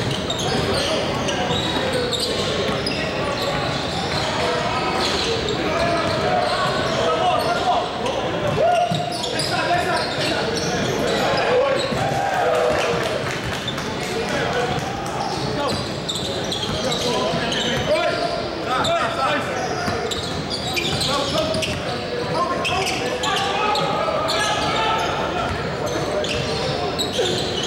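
A crowd of onlookers chatters in the background.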